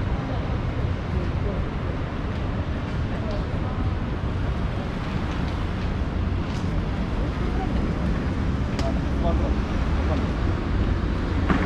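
Traffic hums along a nearby city street.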